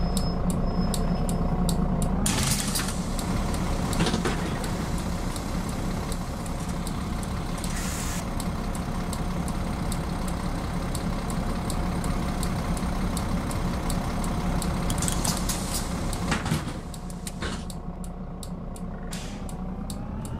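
A bus engine idles with a low steady rumble.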